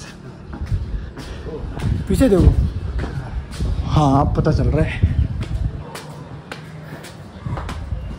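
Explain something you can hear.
Footsteps thud on stairs and a walkway.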